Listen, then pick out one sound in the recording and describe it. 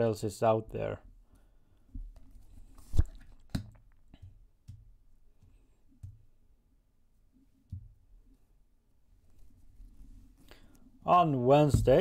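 Cards slide and tap softly on a table.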